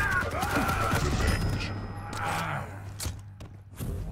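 Gunfire from a video game blasts in short bursts.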